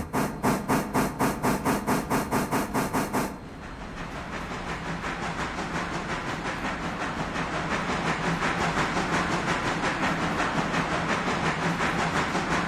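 A steam locomotive chuffs in a steady rhythm, loud at first and then softer and quicker.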